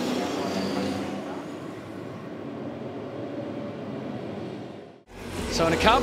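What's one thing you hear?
Racing car engines roar as the cars drive past in a pack.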